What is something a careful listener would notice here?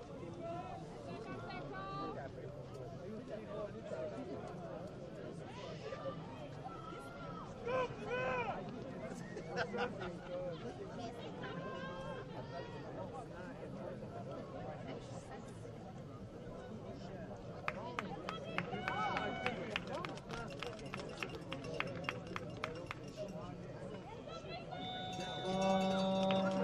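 A crowd of spectators chatters and shouts at a distance outdoors.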